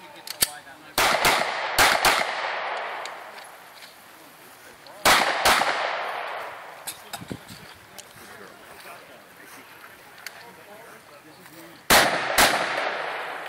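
Pistol shots crack in quick pairs outdoors, echoing off into the distance.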